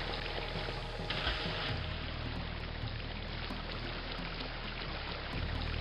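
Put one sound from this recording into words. Water pours steadily from a spout into a pool.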